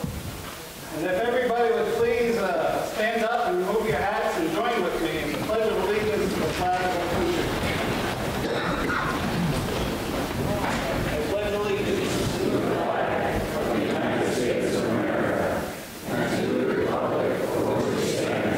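A man speaks steadily through a microphone in a large echoing hall.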